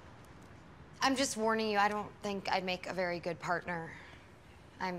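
A young woman speaks with feeling.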